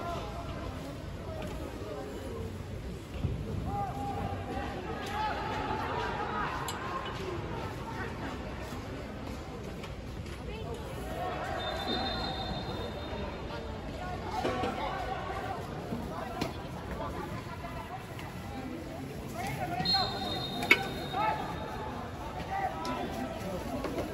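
Football players shout and call out across an open stadium.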